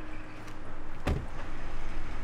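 A car door shuts with a solid thump.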